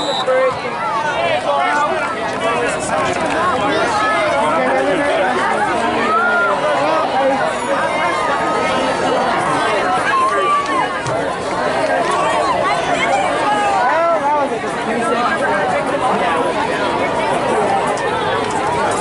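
A crowd of spectators cheers and shouts loudly nearby, outdoors.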